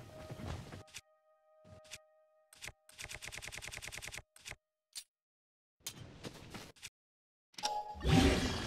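Soft menu clicks and ticks sound in quick succession.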